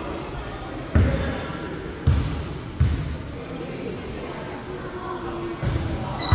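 A basketball bounces on the floor with booming thuds.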